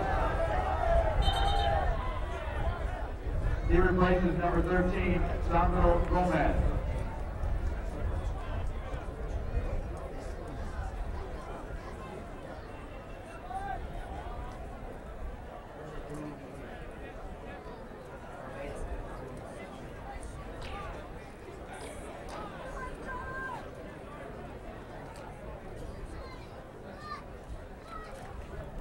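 A crowd murmurs and cheers in an open stadium.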